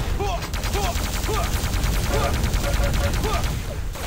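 A weapon fires with a sharp electric crack.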